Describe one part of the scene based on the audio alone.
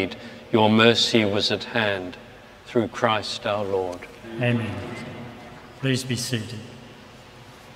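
An elderly man chants a prayer through a microphone in a large echoing church.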